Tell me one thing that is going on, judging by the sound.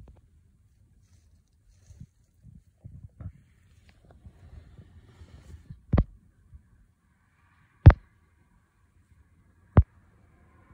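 A car rolls slowly along a road, heard from inside with a low rumble.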